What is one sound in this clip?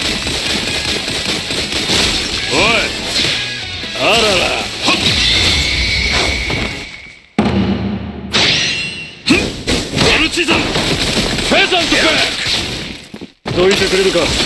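Blades swish and strike in a fast fight.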